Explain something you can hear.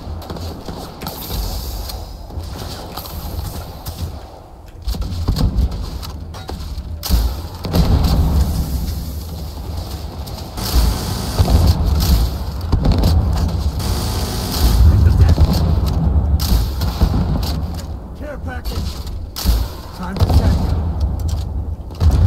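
A rifle fires shots that boom loudly.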